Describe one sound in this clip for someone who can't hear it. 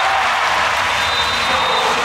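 Young women cheer in a large echoing hall.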